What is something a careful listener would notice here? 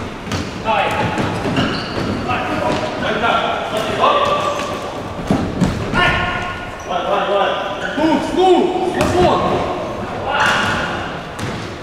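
Men shout and call out to each other across a large echoing hall.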